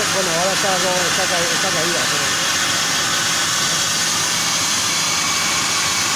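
A plasma cutter hisses and roars steadily as it cuts through steel plate.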